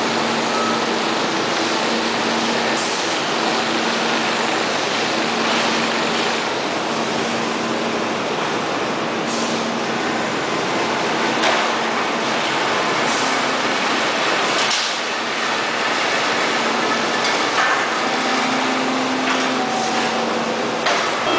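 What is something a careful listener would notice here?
A turntable conveyor whirs steadily as it turns a heavy stack.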